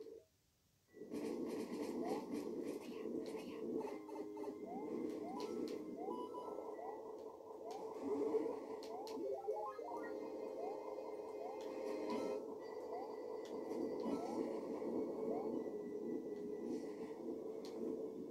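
Lively game music plays.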